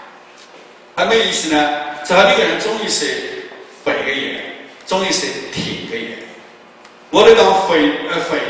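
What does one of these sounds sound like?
A middle-aged man speaks with animation into a microphone over loudspeakers in a large echoing hall.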